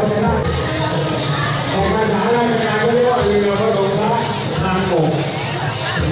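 A large outdoor crowd of men and women chatters loudly close by.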